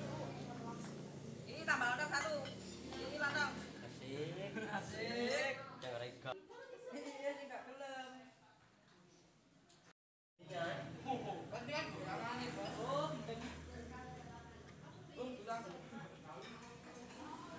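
Several young people chat and talk over one another nearby.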